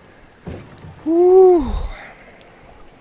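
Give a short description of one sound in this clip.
A young man cries out in a long, rising and falling shout.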